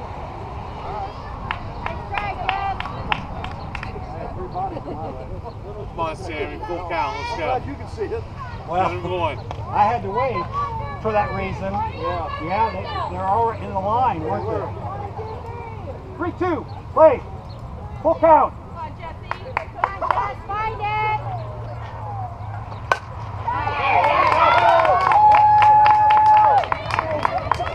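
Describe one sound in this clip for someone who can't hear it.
Young women chatter and cheer throughout, outdoors.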